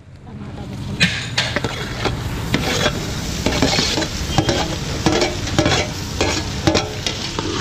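A metal spatula scrapes and clanks against a metal plate.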